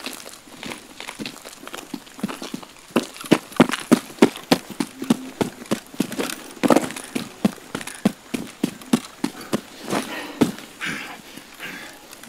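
Footsteps crunch quickly over gravel and pavement.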